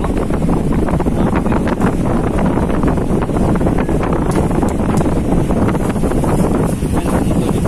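Wind blows hard across the water.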